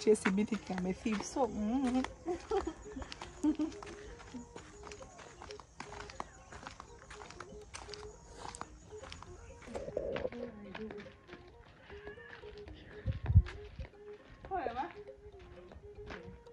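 Footsteps crunch on a dirt path.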